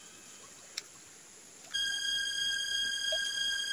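Water trickles along a narrow channel.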